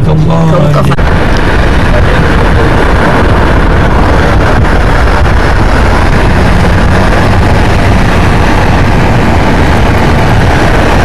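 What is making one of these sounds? Wind rushes loudly past an open car window.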